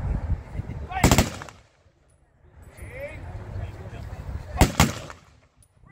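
Rifles fire a loud volley that echoes.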